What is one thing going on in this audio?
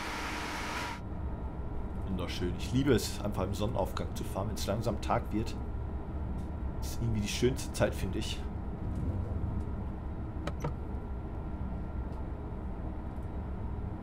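A train rumbles over the rails.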